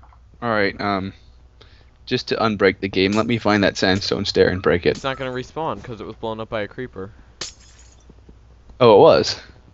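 Blocks crunch as a pickaxe breaks them in a game.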